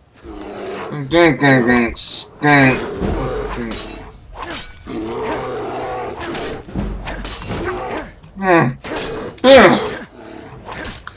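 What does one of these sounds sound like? A bear roars and growls loudly.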